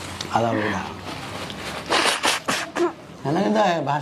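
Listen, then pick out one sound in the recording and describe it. A young woman blows her nose into a tissue.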